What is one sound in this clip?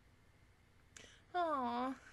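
A young woman speaks briefly and brightly close to a microphone.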